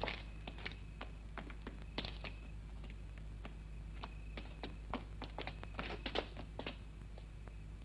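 Footsteps walk on hard ground outdoors.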